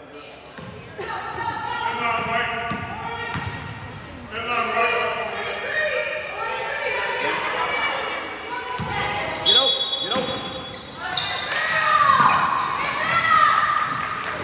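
Young girls shout and chatter loudly in an echoing gym.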